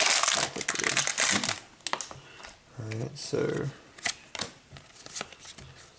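Trading cards rustle and flick against each other in someone's hands.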